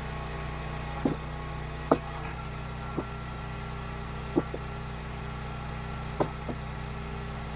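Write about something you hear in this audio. Split logs thud and knock as they are handled.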